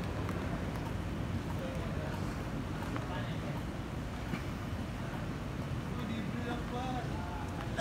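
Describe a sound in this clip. Footsteps walk along a paved street.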